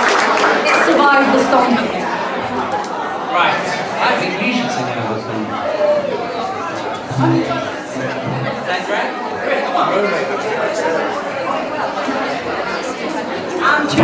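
A man speaks through a microphone and loudspeakers.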